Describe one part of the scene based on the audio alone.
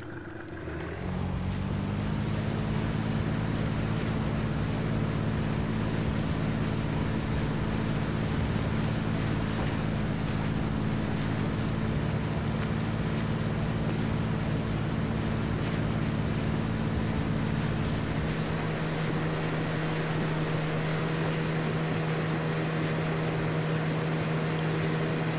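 A boat engine drones steadily and low.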